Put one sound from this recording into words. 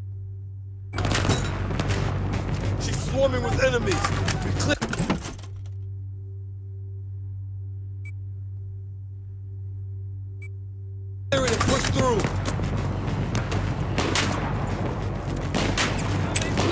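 Loud battle noise roars and rumbles.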